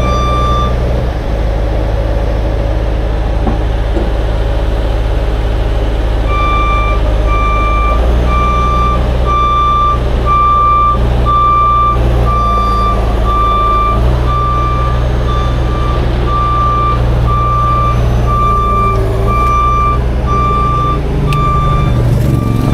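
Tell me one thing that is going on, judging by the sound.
A truck's diesel engine rumbles steadily at idle close by.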